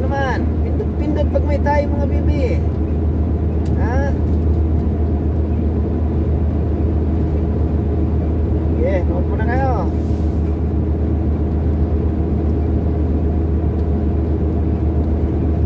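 A vehicle engine hums steadily with road rumble while driving.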